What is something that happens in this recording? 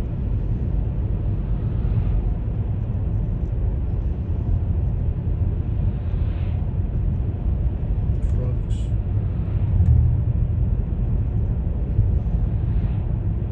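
Tyres hum on smooth pavement.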